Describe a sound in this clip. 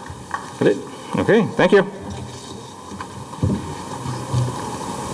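A man speaks calmly into a microphone outdoors, heard through loudspeakers.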